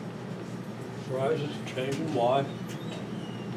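An elderly man speaks briefly and calmly, close to a microphone.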